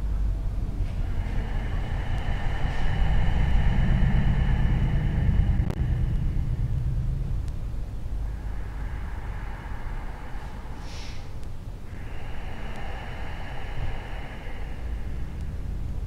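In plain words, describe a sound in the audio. A woman breathes slowly and deeply.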